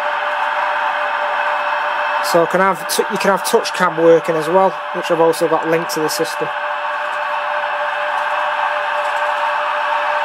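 An electric locomotive engine hums steadily through a small speaker.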